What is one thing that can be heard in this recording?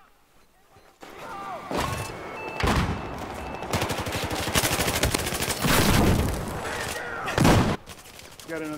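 A machine gun fires rapid bursts at close range.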